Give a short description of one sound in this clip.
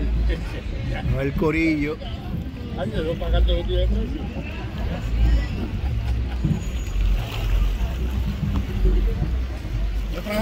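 Wind blows across open water, buffeting steadily.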